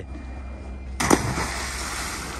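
A body plunges into the sea with a loud splash.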